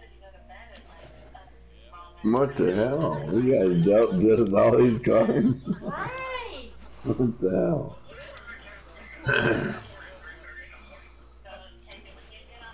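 Playing cards flick down onto a pile in short soft taps.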